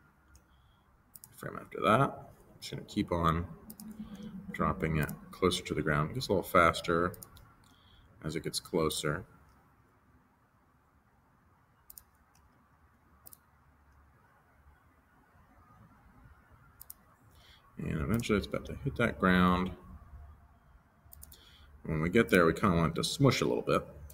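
A mouse clicks now and then.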